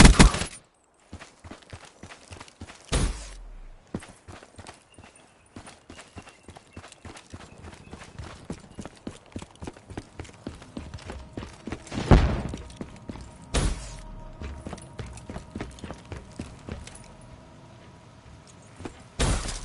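Footsteps crunch steadily over dirt and leaves.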